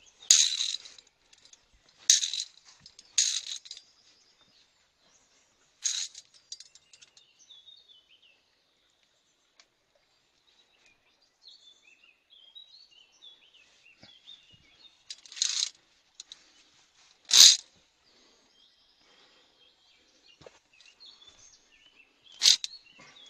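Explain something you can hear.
Metal carabiners clink and scrape against a steel cable.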